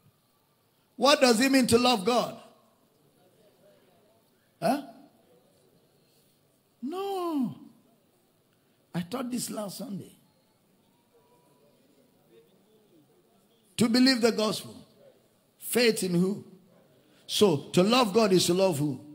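A middle-aged man preaches with animation through a microphone in a large echoing hall, pausing between phrases.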